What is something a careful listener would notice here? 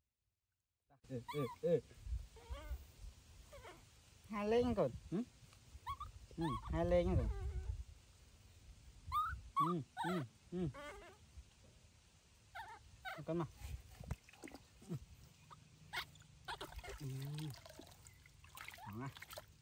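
A baby monkey squeals and cries shrilly.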